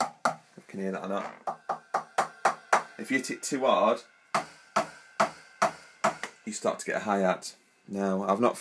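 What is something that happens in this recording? Drum hits play through small laptop speakers in a sharp, uneven pattern.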